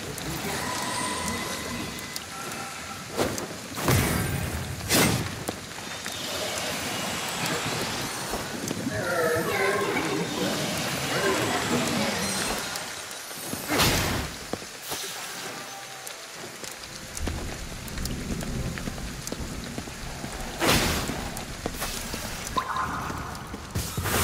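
Sharp magical blasts whoosh and crack in short bursts.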